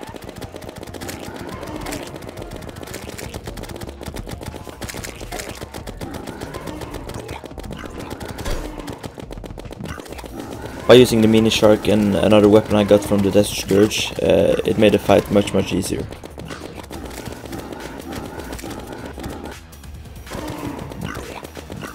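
Rapid electronic shots fire from a game weapon.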